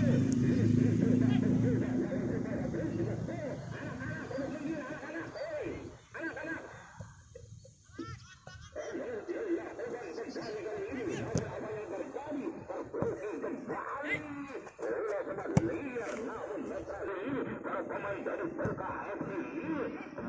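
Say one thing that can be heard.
Young men shout to each other across an open field.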